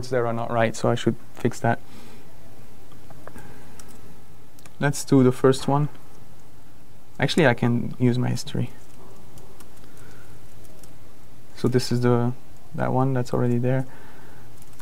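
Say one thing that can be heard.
A man speaks calmly in short bursts through a microphone.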